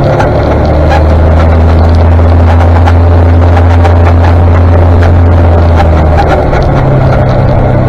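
A tractor engine rumbles steadily close ahead.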